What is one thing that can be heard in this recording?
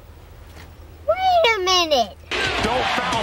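A young boy speaks loudly outdoors.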